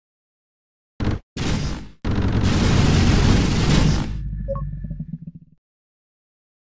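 Deep explosions roar and rumble.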